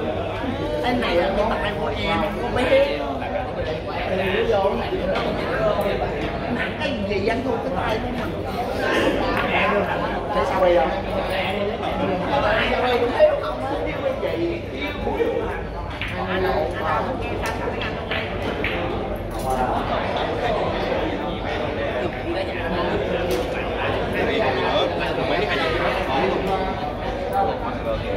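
Many men and women chat at a distance in a busy room.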